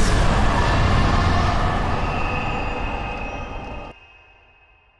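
A deep, shimmering magical rush rumbles loudly, then fades away.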